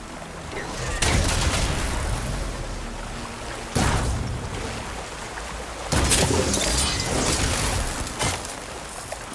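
Loud blasts and metal crashes burst out during a fight with a machine.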